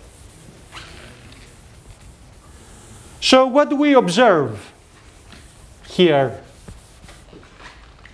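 A chalk eraser rubs across a blackboard.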